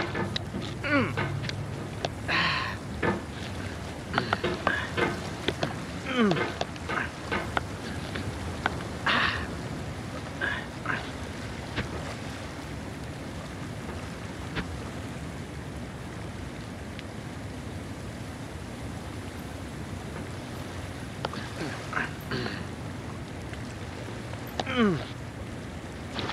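A metal hammer knocks and scrapes against wood and rock.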